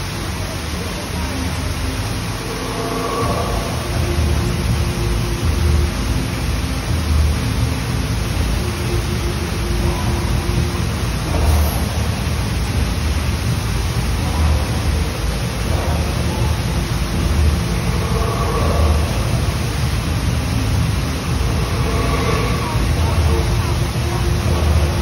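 A waterfall splashes and rushes steadily nearby.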